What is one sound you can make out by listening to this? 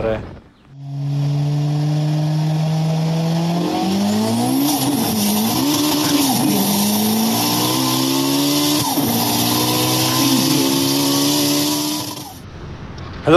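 A motorcycle engine hums and rises in pitch as the bike pulls away and speeds up.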